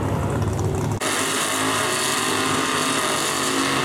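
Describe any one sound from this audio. Tyres screech and spin on the track as a car does a burnout.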